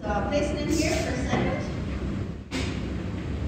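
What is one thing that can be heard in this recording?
A woman speaks aloud nearby.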